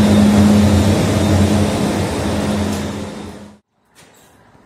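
An electric train hums close by.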